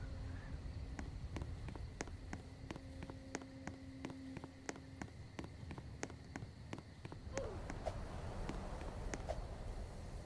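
Footsteps patter quickly on gravel.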